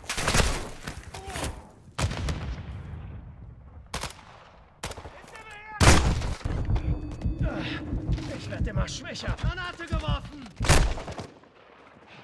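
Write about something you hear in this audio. Loud gunshots crack in short bursts, each followed by ringing echo.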